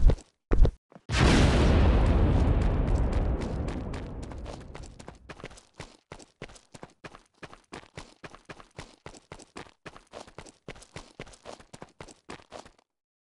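Quick footsteps patter on hollow wooden boards.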